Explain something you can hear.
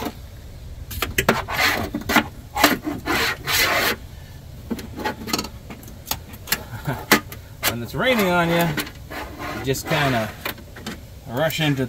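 Plastic clips snap and click as a pry tool works on a car door.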